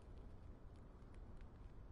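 A man yawns close to a microphone.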